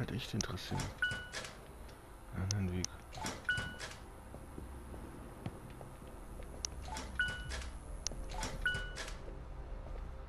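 A locked door handle rattles with a short click.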